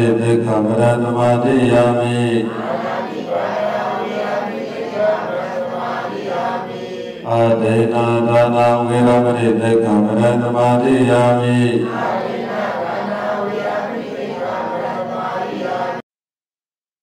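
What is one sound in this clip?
A man chants steadily into a microphone, heard through a loudspeaker in an echoing hall.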